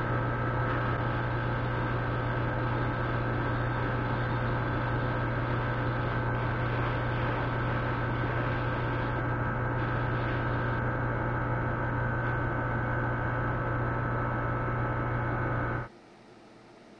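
A spray booth fan hums steadily.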